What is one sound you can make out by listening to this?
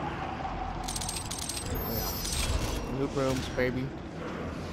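A bright chime rings as a pickup is collected.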